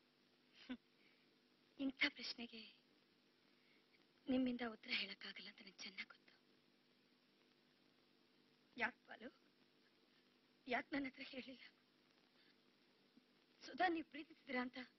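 A woman speaks softly in short phrases close by.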